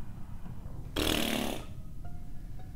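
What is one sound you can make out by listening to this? A short, loud alarm blasts from a game.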